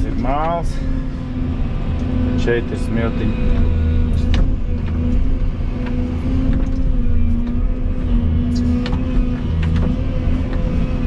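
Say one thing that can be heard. An excavator bucket scrapes and digs into soil.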